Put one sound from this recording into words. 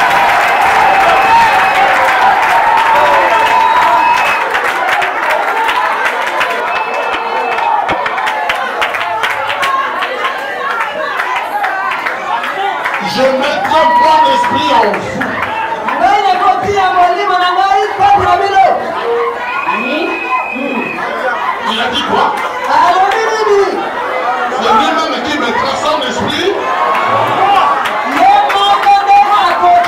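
A large crowd sings together in an echoing hall.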